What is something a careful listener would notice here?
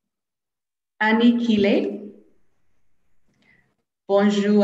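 A second woman speaks cheerfully over an online call.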